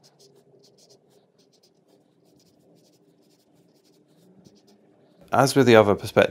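A pen scratches lightly on paper.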